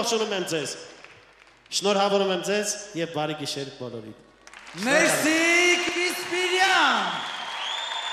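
A man sings loudly through a microphone and loudspeakers in a large echoing hall.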